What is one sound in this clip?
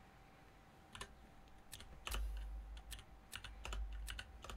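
Game menu clicks sound in quick succession.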